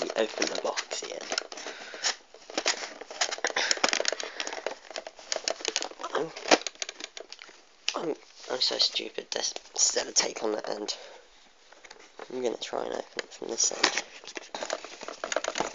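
A plastic toy bus rattles and knocks as it is handled.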